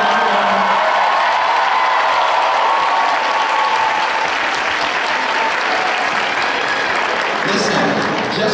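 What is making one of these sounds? An audience claps and cheers.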